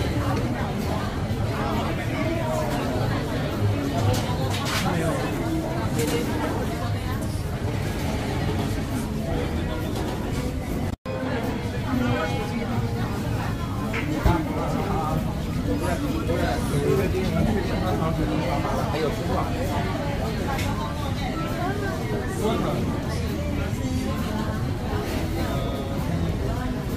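A crowd of people chatters all around in a busy indoor space.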